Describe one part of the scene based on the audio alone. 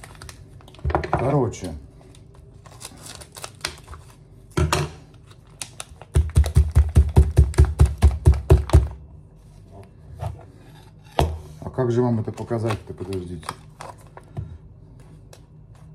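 A foil coffee packet crinkles and rustles in a man's hands.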